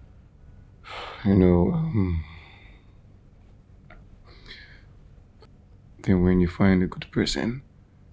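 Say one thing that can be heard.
A man speaks softly in a low voice up close.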